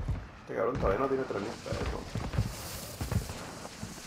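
Rapid gunshots crack nearby.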